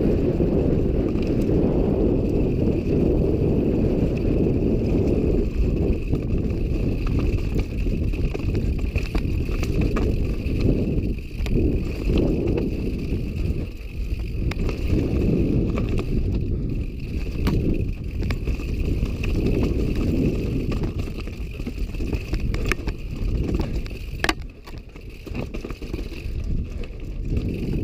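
Strong wind rumbles against a microphone throughout.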